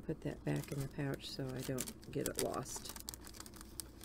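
A plastic sheet crinkles as hands fold it.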